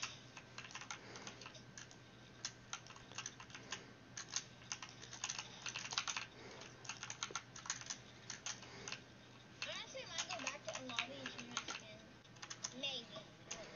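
Building pieces clack and snap into place in rapid bursts in a video game.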